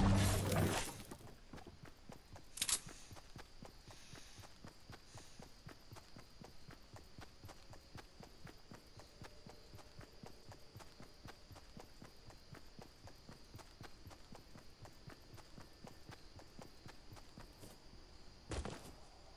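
Footsteps patter quickly and steadily across grass.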